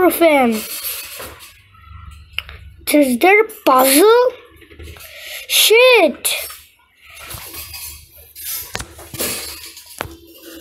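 A boy shouts with animation close to a microphone.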